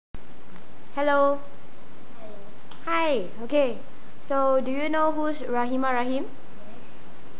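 A young girl speaks up close.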